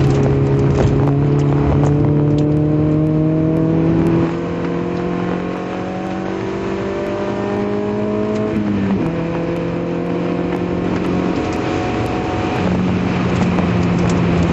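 A car engine hums steadily from inside the car, its pitch rising as it accelerates and dropping at each gear change.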